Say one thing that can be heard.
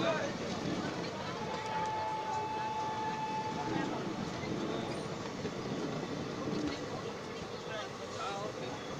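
A passenger train rumbles and clatters past close by.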